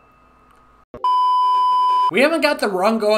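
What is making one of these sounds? A steady, high test tone beeps.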